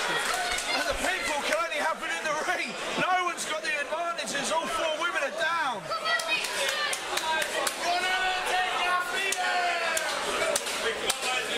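A close crowd of young adults shouts and cheers with excitement.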